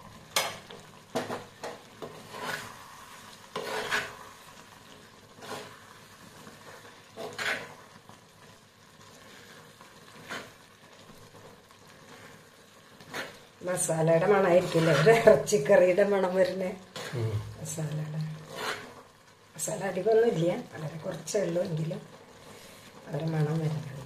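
A metal spoon scrapes and stirs thick food in a clay pot.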